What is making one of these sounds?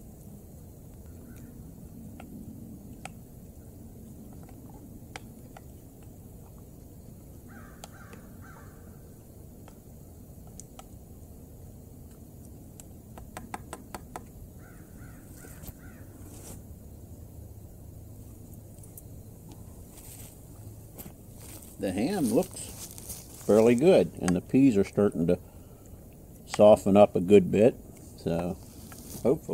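A wooden spoon scrapes and taps inside a metal cup.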